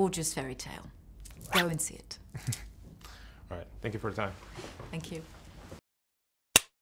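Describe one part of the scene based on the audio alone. A young woman speaks warmly into a nearby microphone.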